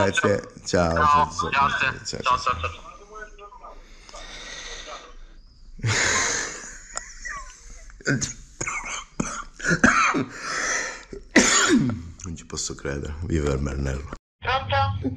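A middle-aged man talks close to the microphone with animation.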